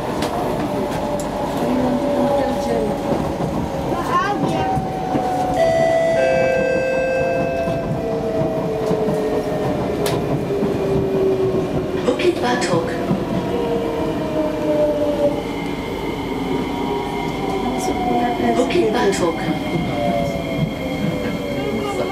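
Train motors whine and slowly fall in pitch as the train slows.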